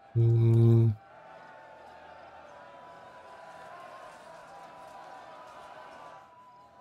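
A large crowd of soldiers clashes and shouts in a battle.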